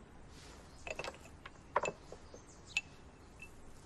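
A porcelain lid clinks against a bowl.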